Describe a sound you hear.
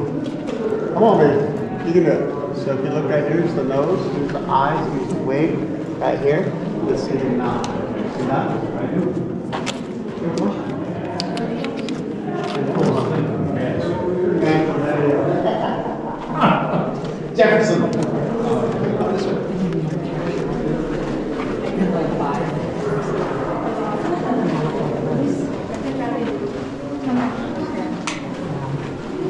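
A crowd of adults and children chatter all around in an echoing space.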